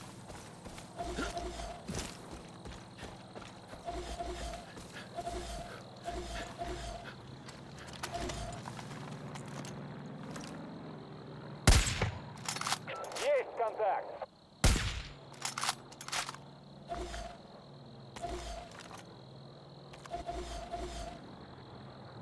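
Footsteps crunch over grass and rock.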